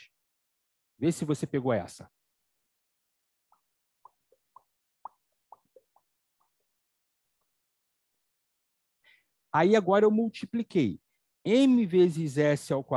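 A man speaks with animation over an online call.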